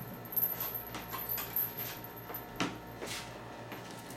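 A metal chain clinks and rattles close by.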